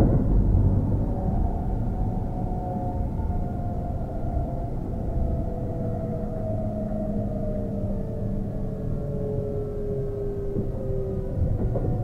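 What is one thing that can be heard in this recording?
A train's motors whine and slowly drop in pitch.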